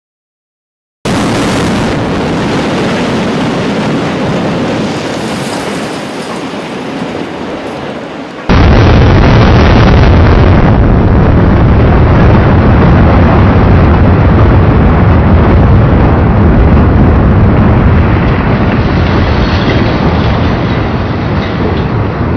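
A tower block collapses with a deep, rolling rumble.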